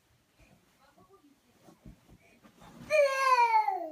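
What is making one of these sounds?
A toddler thumps down onto soft cushions.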